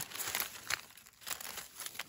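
A knife slices through a small fruit.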